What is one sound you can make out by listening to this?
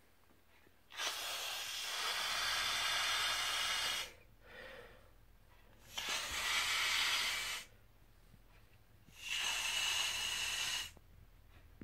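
Air rushes in loud bursts as a man blows up a balloon.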